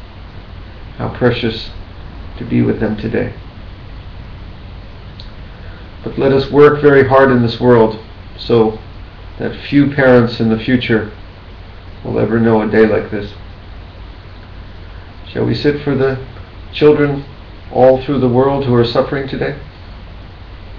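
A middle-aged man speaks calmly and slowly into a nearby microphone, with long pauses.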